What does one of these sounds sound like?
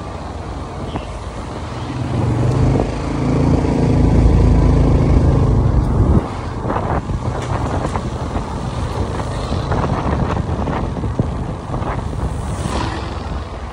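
A motorcycle engine hums as the bike rides along a street.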